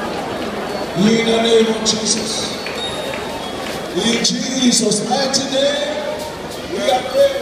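A man preaches loudly through a loudspeaker.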